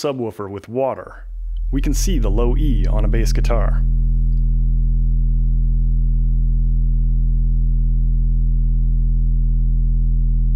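A loudspeaker plays a deep, steady hum.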